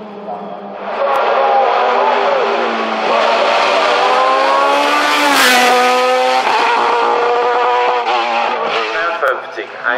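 A second race car engine screams at high revs as it speeds past.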